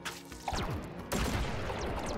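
An explosion bursts with a heavy boom.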